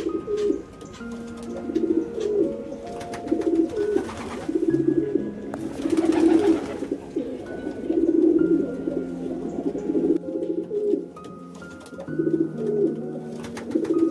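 Pigeons coo in low, repeated bursts.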